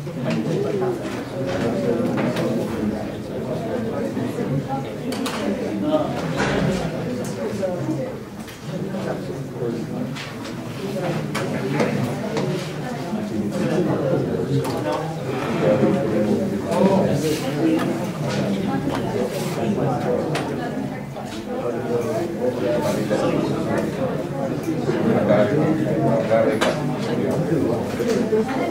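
Many young people chatter in a low murmur.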